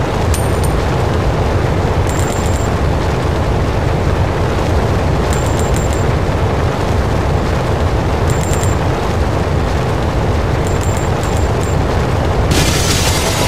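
A sled rushes steadily over snow.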